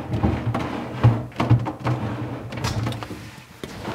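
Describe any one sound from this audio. A fridge door swings shut with a soft thud.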